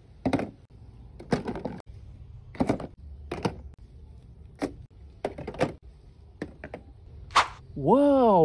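Plastic toy guns clack as they are set down on a hard surface.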